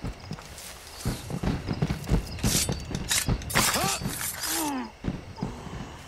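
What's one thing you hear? Blows land with thuds and scuffling in a brief fight.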